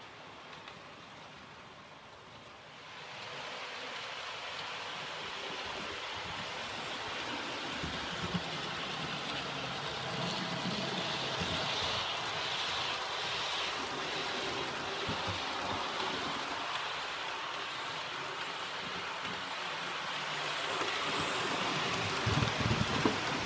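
A model train whirs and rattles along its track, growing louder as it approaches.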